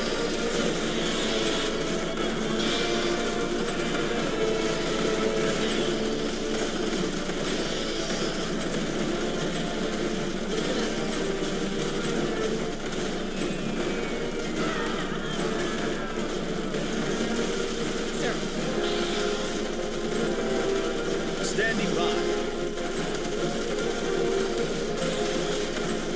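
Gunfire rattles rapidly in a battle.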